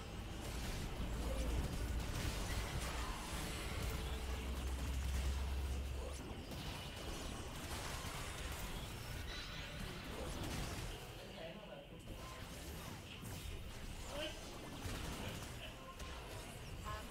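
Game combat effects crackle, clash and burst in quick succession.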